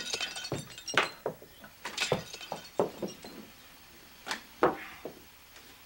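A window sash knocks and thumps as someone climbs through it.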